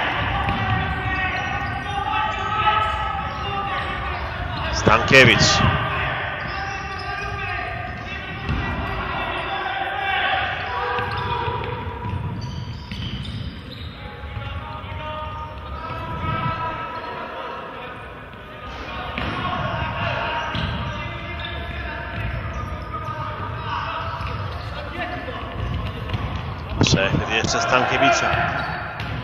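Sports shoes squeak sharply on a hard floor in an echoing hall.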